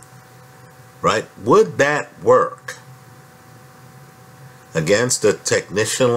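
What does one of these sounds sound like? A man speaks calmly and close to the microphone, pausing between phrases.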